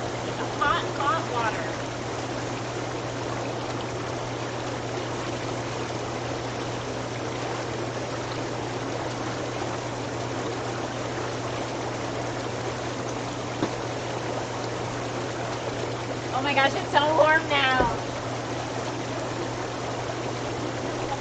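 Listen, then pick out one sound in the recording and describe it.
Water bubbles and churns steadily in a hot tub.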